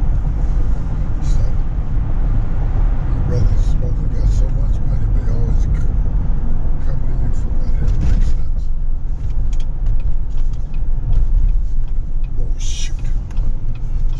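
A car's engine hums steadily with road rumble from inside the cabin.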